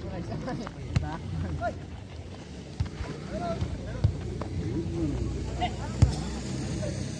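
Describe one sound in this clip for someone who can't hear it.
Players kick a football with dull thuds.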